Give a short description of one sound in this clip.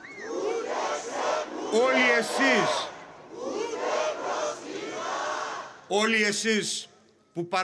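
An elderly man speaks forcefully into a microphone, heard through loudspeakers.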